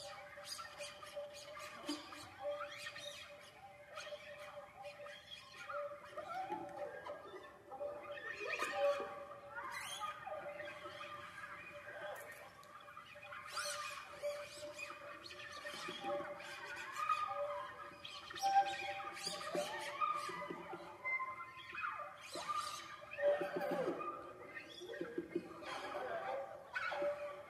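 A guitar ensemble plays a lively piece with plucked notes in a hall with some echo.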